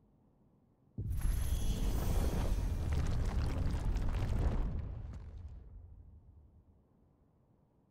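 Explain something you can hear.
A heavy stone door rumbles and grinds open.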